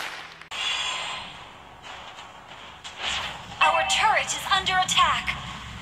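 Game sound effects of weapons clashing and spells whooshing ring out.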